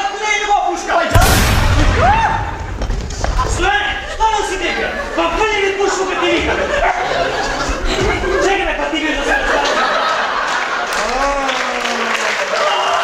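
Men speak loudly and with animation in a large echoing hall.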